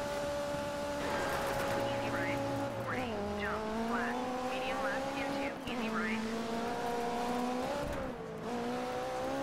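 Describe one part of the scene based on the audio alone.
Tyres skid and crunch on loose gravel.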